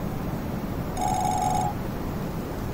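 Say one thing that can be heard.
A short, bright chime rings once.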